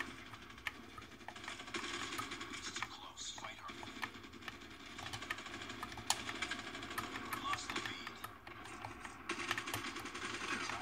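Gunfire and game sounds play from a small phone speaker.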